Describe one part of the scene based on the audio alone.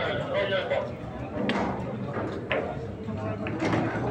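A cue stick strikes a pool ball with a sharp click.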